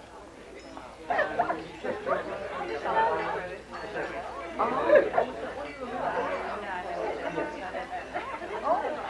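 Many people chatter quietly in a room.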